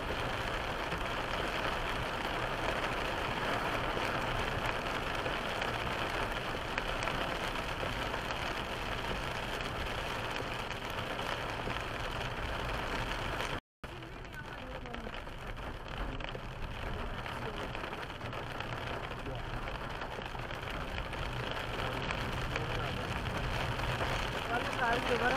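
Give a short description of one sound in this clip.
Heavy rain drums steadily on a car windscreen.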